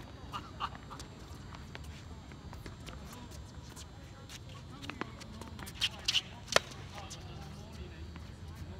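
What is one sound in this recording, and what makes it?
Tennis balls pop off rackets in a rally outdoors.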